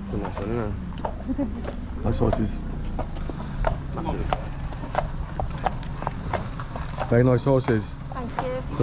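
Horse hooves clop steadily on a paved road.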